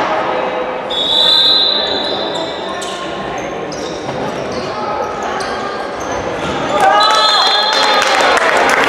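Sports shoes squeak sharply on the floor.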